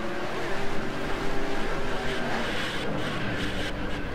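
A race car skids and scrapes along a wall.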